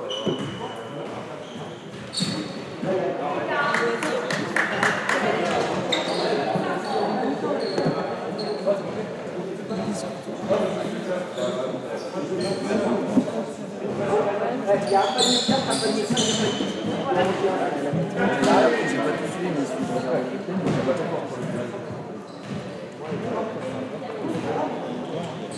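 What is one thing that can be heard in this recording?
Young spectators chatter nearby in a large echoing hall.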